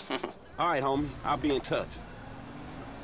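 A man speaks casually on a phone.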